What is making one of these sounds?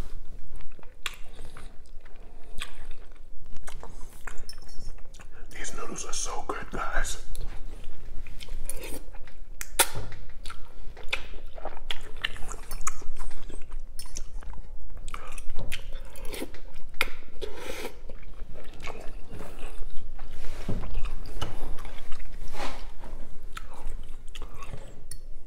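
A metal fork clinks and scrapes against a glass bowl.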